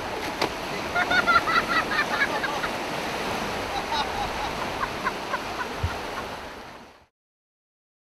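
Waves wash and break on the shore.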